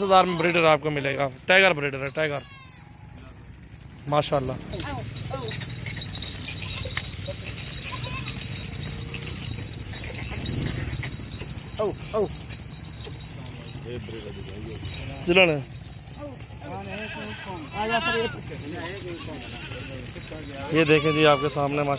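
Goats bleat loudly and repeatedly close by.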